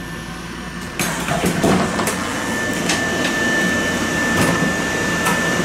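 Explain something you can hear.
Train wheels click and clatter over the rail joints.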